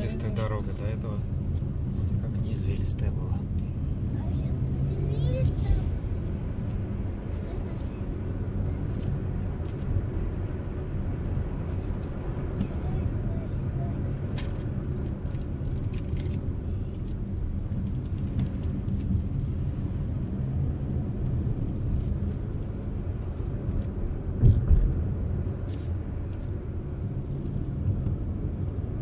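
A car engine hums steadily as it drives along a winding road.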